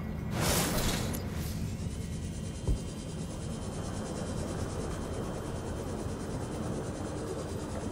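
A small underwater craft's motor hums steadily.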